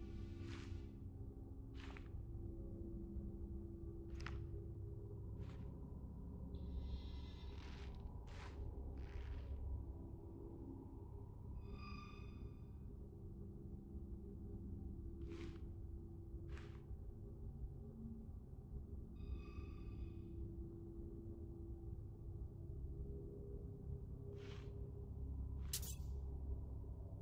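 Soft menu clicks and blips sound as a cursor moves between items.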